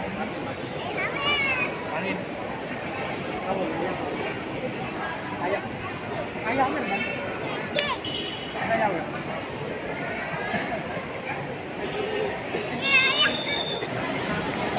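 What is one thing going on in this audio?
A young child's high voice calls out.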